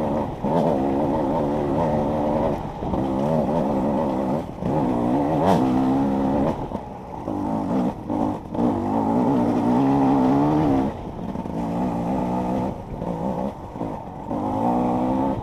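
A dirt bike engine revs hard up and down, close by.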